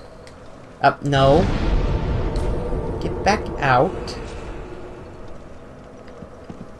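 A fiery explosion booms in a video game.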